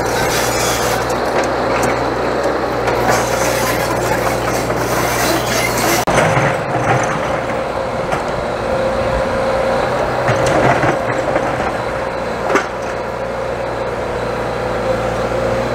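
An excavator's diesel engine rumbles steadily close by.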